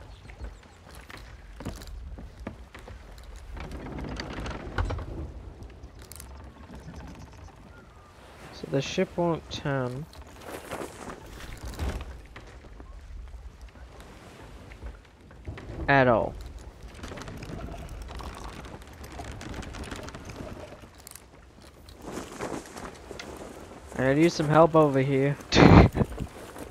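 Waves lap gently against a wooden ship's hull.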